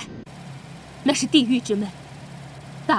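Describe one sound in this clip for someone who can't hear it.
A woman speaks into a radio handset.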